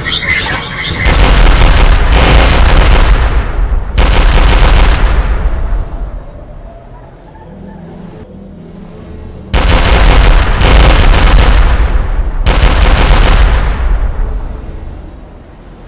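Loud explosions boom and rumble.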